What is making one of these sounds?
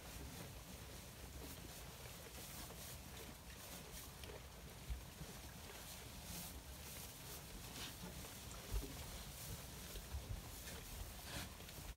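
Sheep munch hay at a feeder, with rustling and soft chewing.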